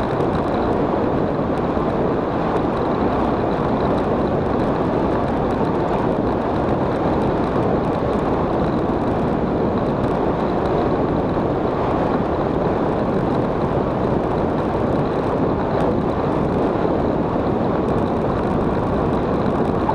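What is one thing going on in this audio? Wind roars past a motorcycle riding at speed.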